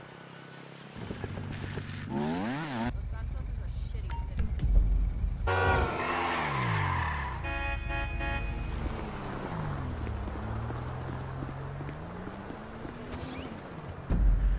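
A motorcycle engine revs up and down as it rides off.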